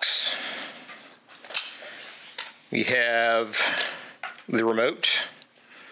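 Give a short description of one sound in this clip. Cardboard scrapes and rustles as a small box is opened.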